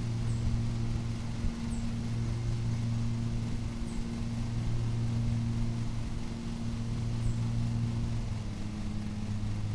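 A ride-on mower engine hums steadily.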